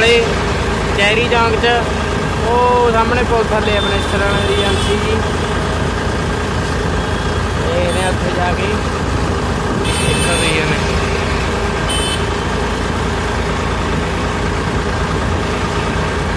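A tractor engine chugs steadily up close.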